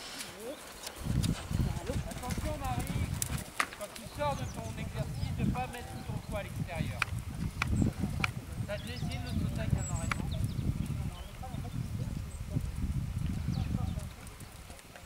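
Horse hooves thud softly on sand.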